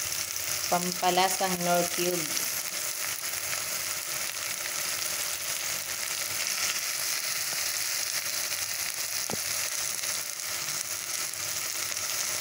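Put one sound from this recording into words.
A wooden spoon scrapes and stirs inside a metal pot.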